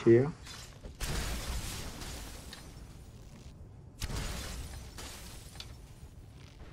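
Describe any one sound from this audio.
A magical blast bursts with a rushing roar.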